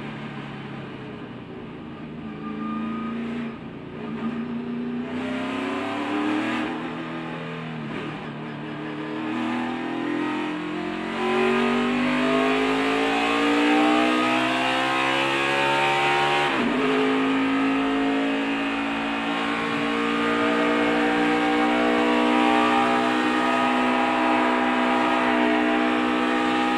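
A race car engine roars loudly at high speed, its pitch rising and falling.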